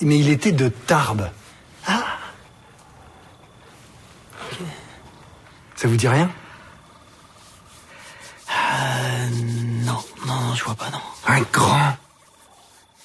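A middle-aged man speaks calmly and closely.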